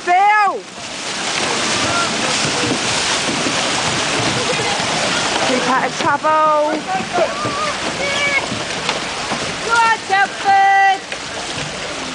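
Men shout and call out excitedly nearby.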